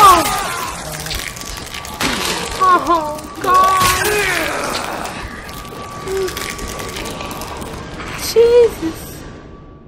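A man screams and groans in pain.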